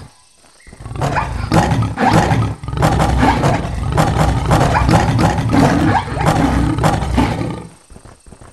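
Big cats growl and snarl in a fierce fight.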